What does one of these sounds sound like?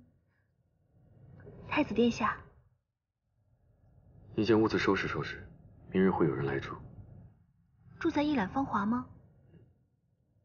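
A young woman speaks softly and politely up close.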